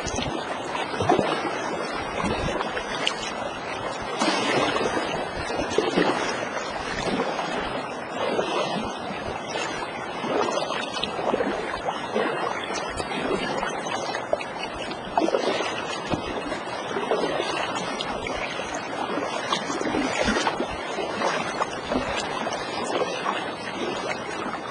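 Water laps and splashes against a small boat's hull.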